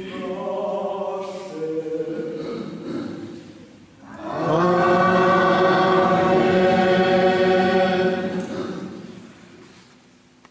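An elderly man chants through a microphone in an echoing hall.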